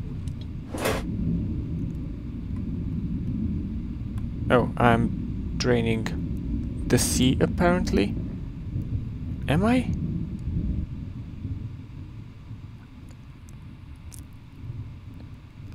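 A low, muffled underwater rumble drones steadily.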